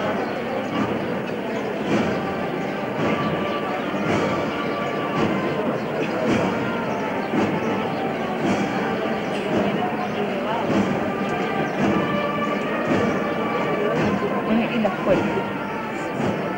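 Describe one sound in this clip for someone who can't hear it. A dense crowd murmurs and chatters close by, outdoors.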